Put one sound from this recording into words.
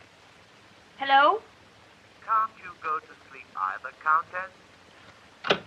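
A young woman speaks into a telephone.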